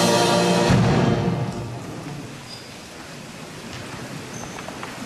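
A middle-aged man speaks calmly into a microphone in a large, echoing hall.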